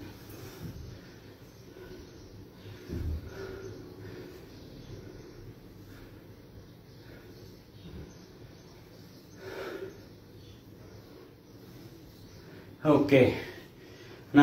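Feet thud softly on an exercise mat.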